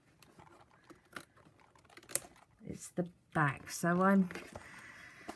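Stiff paper card rustles and taps as it is moved by hand.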